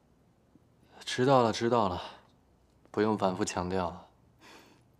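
A young man answers curtly nearby.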